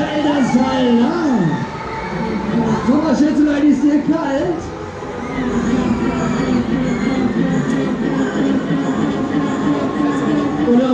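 A fairground ride whirs and rumbles as it spins.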